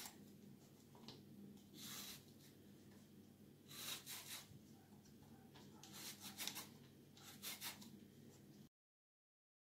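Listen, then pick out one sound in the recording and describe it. A peeler scrapes over an apple in short strokes.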